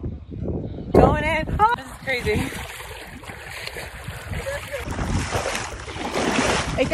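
Water splashes and sloshes around a moving hand.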